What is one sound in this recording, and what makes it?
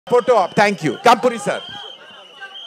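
A man shouts loudly into a microphone with excitement.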